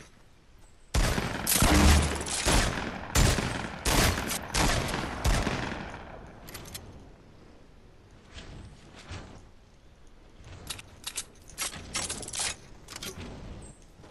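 Wooden building pieces clatter and thud into place in quick bursts.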